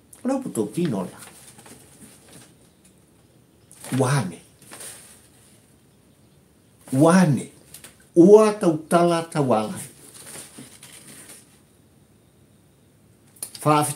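An elderly man speaks warmly and calmly, close to the microphone, with pauses.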